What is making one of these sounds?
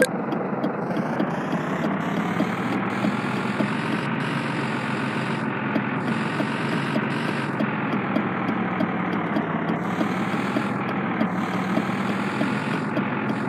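A bus engine hums and revs up as the bus pulls away.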